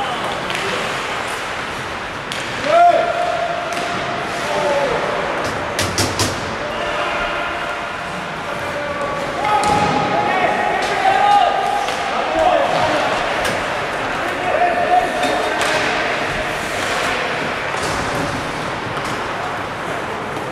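Skates scrape and hiss across the ice in an echoing rink.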